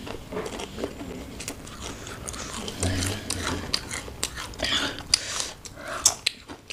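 Crisp chips crunch loudly close by as they are chewed.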